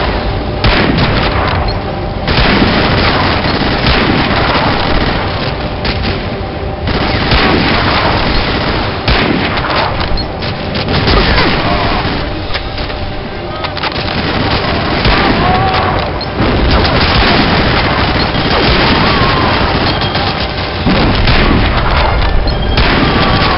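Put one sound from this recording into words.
A rifle bolt clicks as it is worked between shots.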